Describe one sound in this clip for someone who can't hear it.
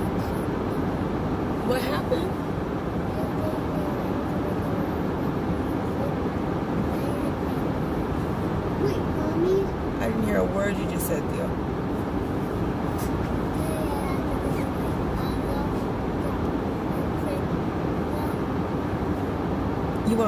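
A car engine hums steadily inside the cabin.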